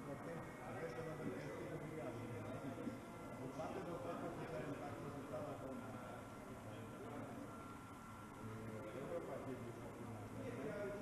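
Model train wheels squeal on the rails.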